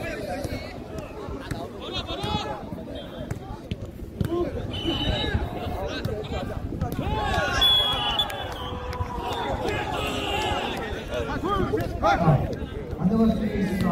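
Several young men shout and call out to each other outdoors.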